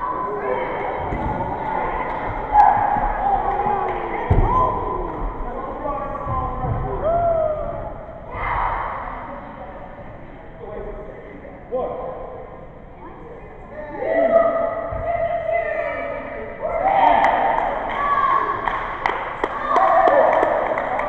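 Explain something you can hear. A small crowd shouts and cheers in a large echoing hall.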